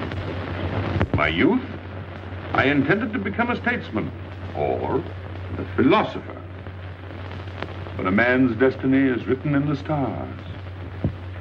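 Men talk in low, calm voices.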